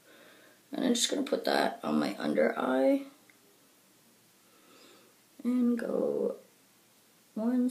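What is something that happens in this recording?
A woman speaks calmly and close to a microphone.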